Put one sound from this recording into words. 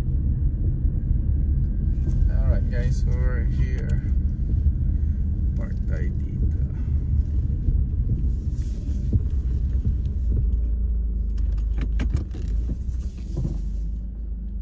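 A car rumbles along a road, heard from inside.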